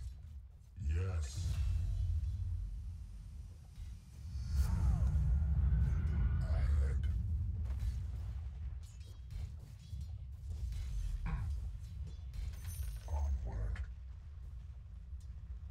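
Fantasy game spells whoosh and crackle.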